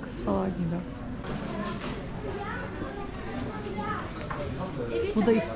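Several adults chat nearby, indoors.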